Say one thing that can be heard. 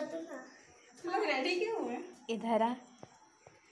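A young girl speaks with animation.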